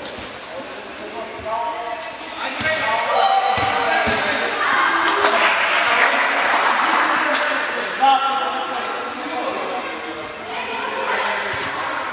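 Young players shout and call out in a large echoing hall.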